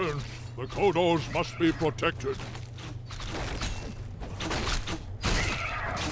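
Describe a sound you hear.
Swords clash and clang in a battle.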